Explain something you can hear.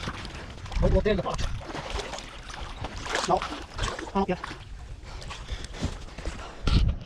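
Shallow water and mud slosh as someone wades through them.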